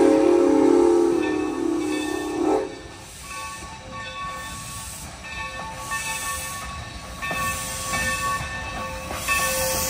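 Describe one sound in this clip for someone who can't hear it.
A steam train rumbles closer along the tracks.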